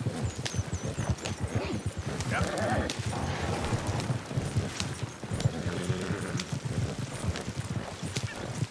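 A horse's hooves clop on grass.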